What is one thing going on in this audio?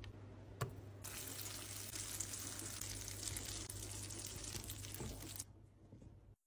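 Caramel sizzles and bubbles in a hot pan.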